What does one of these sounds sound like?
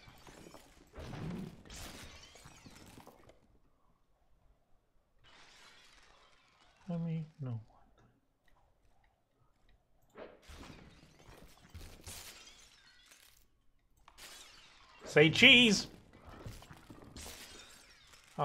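A figure shatters into pieces with a glassy crash.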